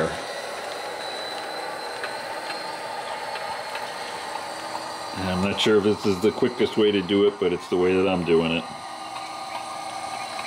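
A model train rumbles and clicks softly along its track.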